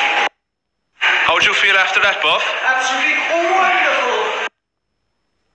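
A man shouts excitedly.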